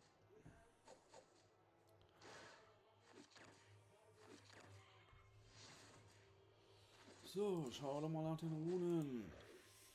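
Game battle effects whoosh and clash.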